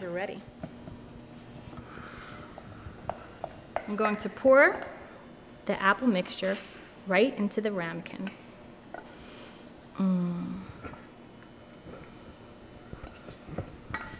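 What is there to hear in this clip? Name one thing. A wooden spoon scrapes and taps against a metal pot.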